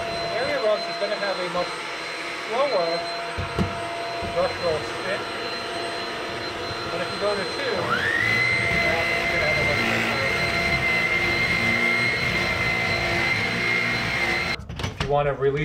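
A vacuum cleaner whirs steadily, its whine rising to a higher pitch, then cuts off abruptly.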